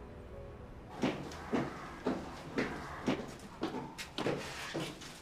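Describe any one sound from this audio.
Footsteps hurry down a stairway.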